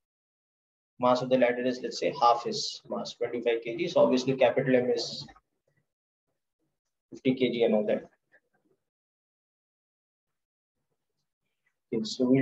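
A man speaks calmly and clearly into a close microphone, in bursts with pauses.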